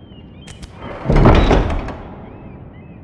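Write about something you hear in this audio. A heavy wooden door thuds and creaks open.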